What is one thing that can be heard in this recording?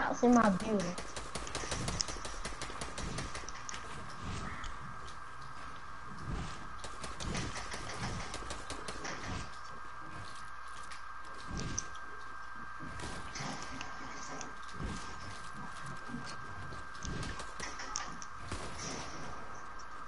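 Rapid building clicks and thuds sound in a video game.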